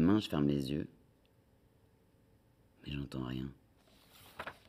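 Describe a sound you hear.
A young woman reads aloud calmly into a close microphone.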